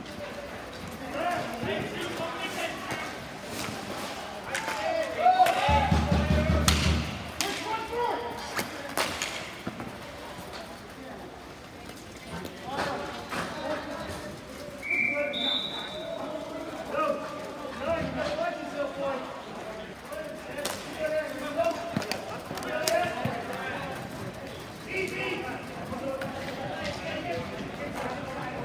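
Young players shout to each other across an open rink.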